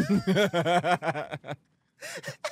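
A man laughs heartily into a close microphone.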